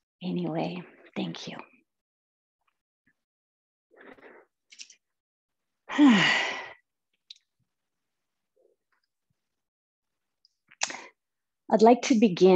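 A young woman speaks calmly into a microphone, with pauses.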